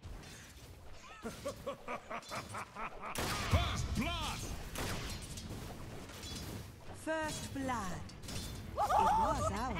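Weapons clash and magic effects burst in a busy fight.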